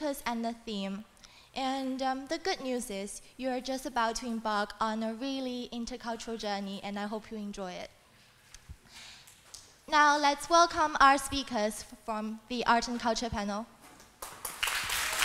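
A young woman speaks calmly through a microphone in an echoing hall.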